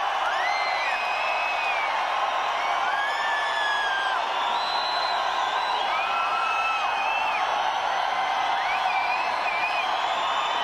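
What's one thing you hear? Shrill whistles rise and fall from a crowd again and again.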